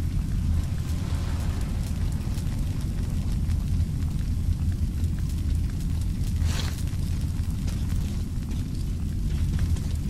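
Flames crackle nearby over a low steady rumble.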